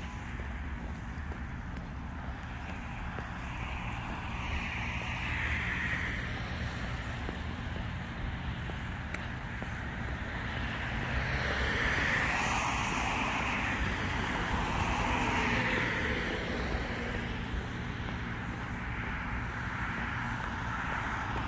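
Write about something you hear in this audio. Wind rumbles and buffets outdoors.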